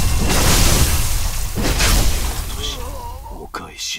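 Steel swords clash and ring.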